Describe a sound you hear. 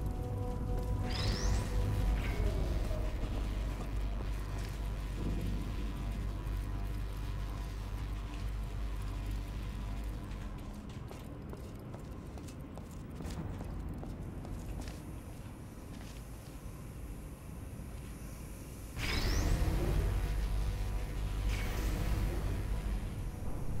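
A machine whirs with a rising whine as a lift starts.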